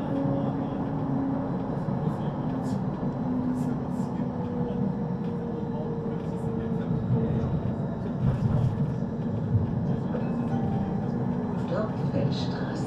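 An electric tram hums steadily while standing.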